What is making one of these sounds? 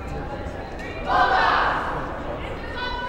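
A team of young women cheers together loudly.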